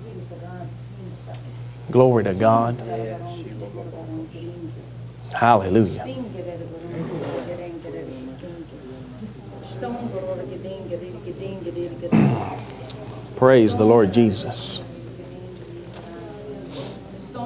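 A man speaks with passion into a microphone in a large echoing hall.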